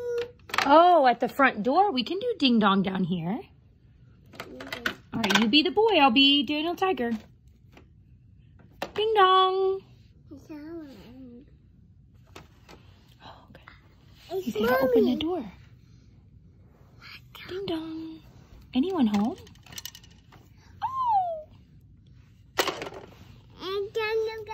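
A woman talks nearby in a playful, sing-song voice.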